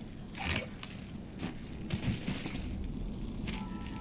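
A body thuds onto the ground.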